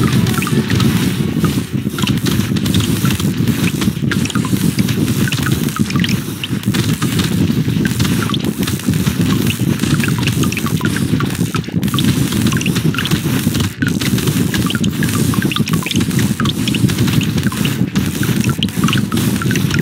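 Game enemies burst with soft popping sounds.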